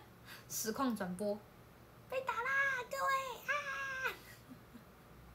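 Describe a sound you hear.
A young woman speaks close by in a high, lively voice.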